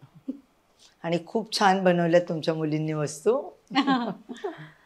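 An older woman speaks warmly close to a microphone.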